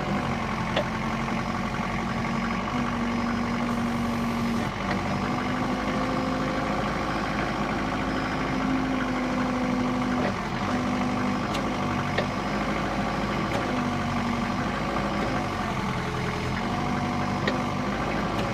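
A forklift engine hums steadily nearby.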